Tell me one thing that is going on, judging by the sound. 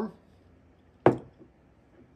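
A bottle cap pops off with a sharp click.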